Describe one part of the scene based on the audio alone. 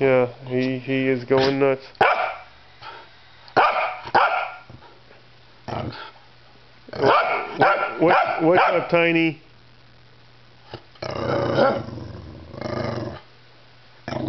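A corgi yaps and whines excitedly.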